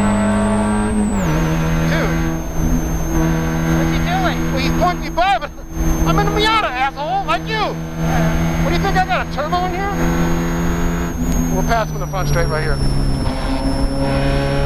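A Spec Miata's engine drops sharply in pitch as it shifts gear.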